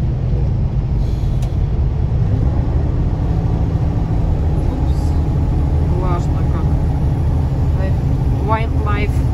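A vehicle's engine rumbles steadily, heard from inside.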